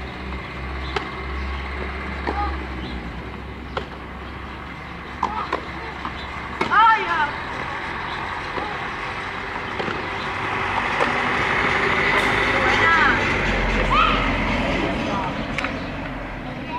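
A tennis racket strikes a ball outdoors.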